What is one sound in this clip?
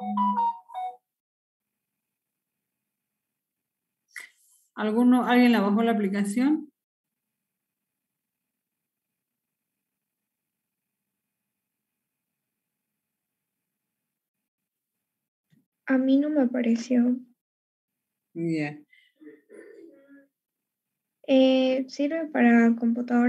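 A woman speaks calmly in short bursts with pauses, heard through an online call.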